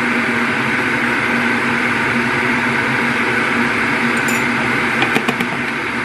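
A spoon clinks against a mug.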